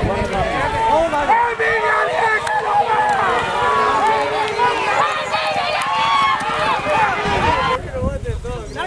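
A crowd of spectators shouts and cheers excitedly nearby.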